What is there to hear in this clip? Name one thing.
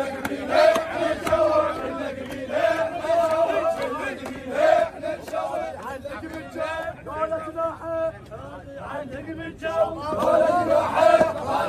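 A crowd of men chants loudly and rhythmically outdoors.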